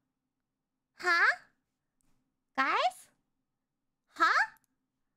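A young woman's high, cute voice exclaims in three short, rising bursts, close to a microphone.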